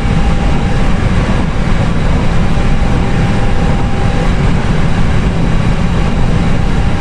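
Jet engines rumble steadily close by.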